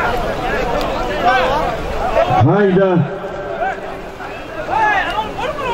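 A crowd of men shouts and calls out loudly outdoors.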